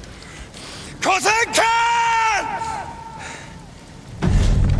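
A man shouts a long, loud battle cry close by.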